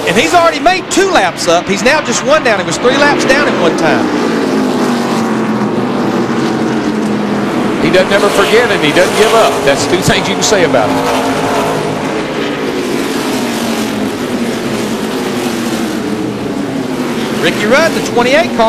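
Race car engines roar loudly and whine as the cars speed past.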